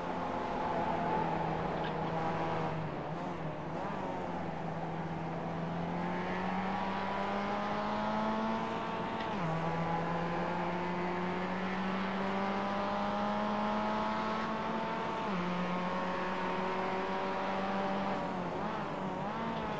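A race car engine drones and rises in pitch through the gears, dropping sharply at each gear change.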